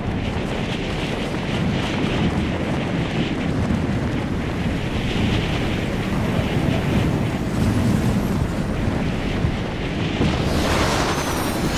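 Wind rushes loudly past a falling figure.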